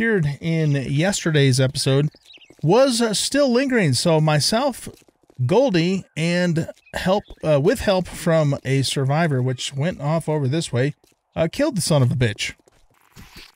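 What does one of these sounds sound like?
An adult man talks with animation, close to a microphone.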